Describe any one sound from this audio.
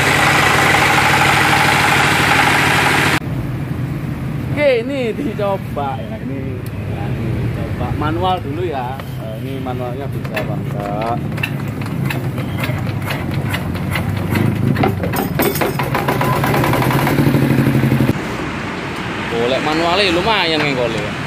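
A diesel engine runs with a loud, steady chugging.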